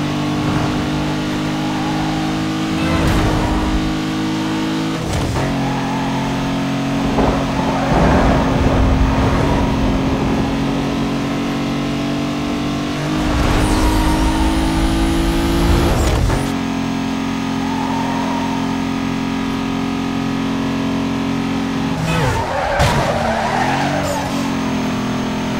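A racing car engine roars steadily at high speed, shifting pitch now and then.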